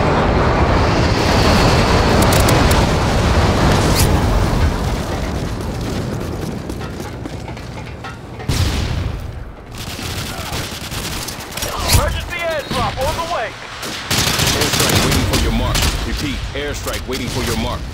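A rifle fires in rapid bursts nearby.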